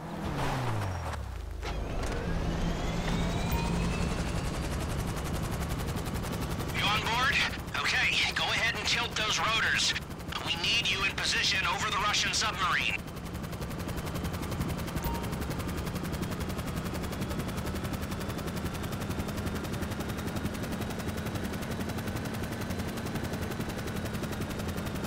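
An aircraft's rotors drone steadily as it flies.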